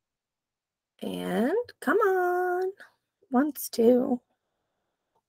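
A woman speaks expressively through an online call microphone.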